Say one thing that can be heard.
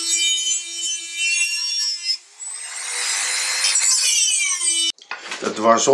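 A small rotary grinder whines at high speed while cutting metal.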